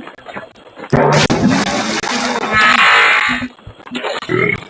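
A loud splash and bubbling sound.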